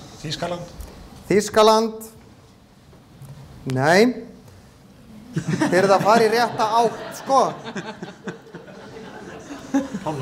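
A man speaks into a microphone, his voice echoing slightly.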